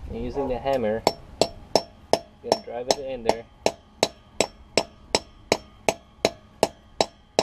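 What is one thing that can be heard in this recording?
A hammer taps metal in quick, steady blows.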